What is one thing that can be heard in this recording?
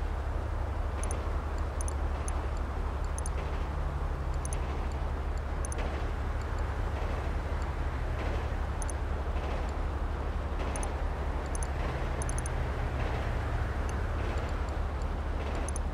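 Short electronic clicks sound now and then.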